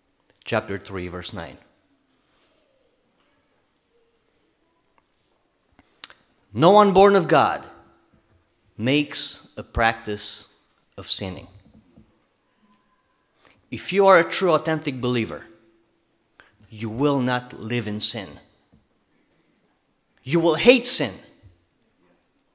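A middle-aged man speaks calmly and deliberately into a microphone, with long pauses.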